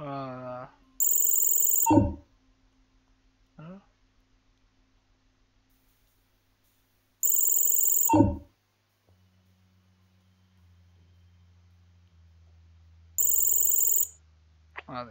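A harsh electronic buzzer sounds in short bursts.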